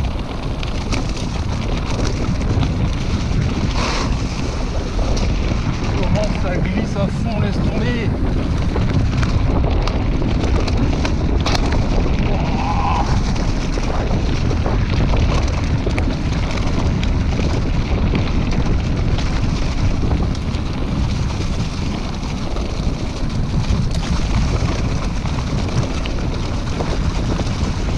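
Bicycle tyres roll and crunch over a leaf-covered dirt trail.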